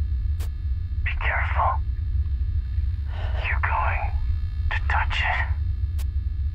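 An elderly woman speaks in a low, tense voice close by.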